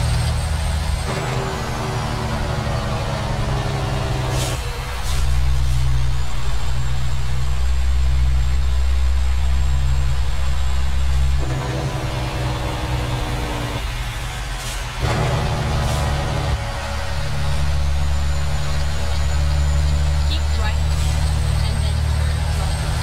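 A truck's diesel engine rumbles steadily, its pitch shifting as the gears change.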